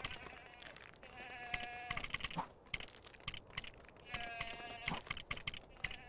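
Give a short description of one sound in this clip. Short menu blips tick as a selection moves from item to item.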